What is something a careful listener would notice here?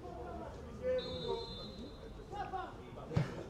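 A referee's whistle blows briefly.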